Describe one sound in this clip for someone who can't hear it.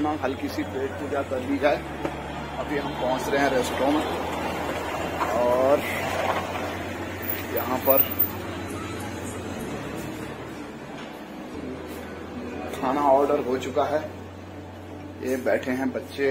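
A middle-aged man talks close by, with animation.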